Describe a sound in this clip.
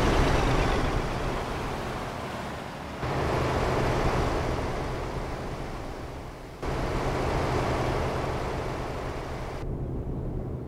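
Tyres roar loudly on a motorway.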